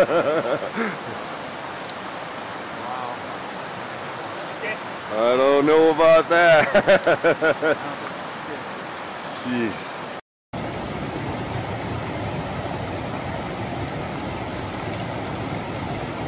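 A stream rushes and gurgles over rocks.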